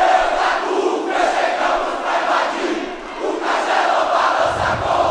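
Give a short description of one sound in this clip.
A huge stadium crowd chants loudly in unison, outdoors.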